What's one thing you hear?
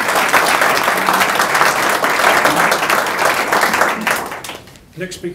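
A loud burst of applause fills a room.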